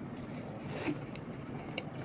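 A woman sips a drink.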